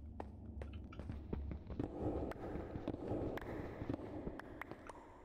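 A pickaxe knocks repeatedly on stone.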